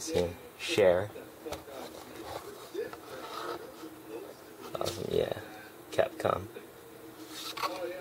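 Cardboard creaks and rustles as it is handled.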